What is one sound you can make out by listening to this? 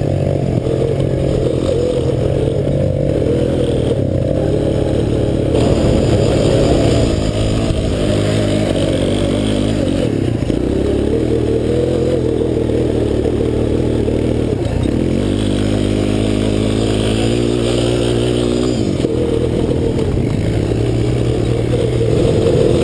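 An all-terrain vehicle engine runs close by, revving up and down.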